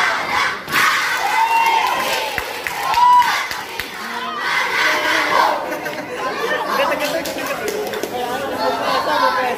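A large crowd of young people chants and shouts outdoors.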